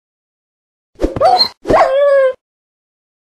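A wolf howls briefly.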